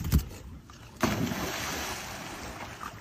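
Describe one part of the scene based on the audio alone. Water splashes as dogs swim in a pool.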